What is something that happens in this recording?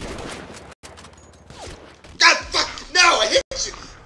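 A rifle shot cracks once.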